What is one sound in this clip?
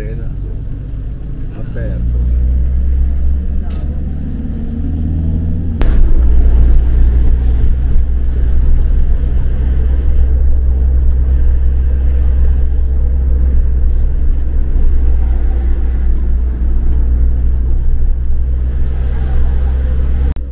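Tyres roll over asphalt with a low rumble.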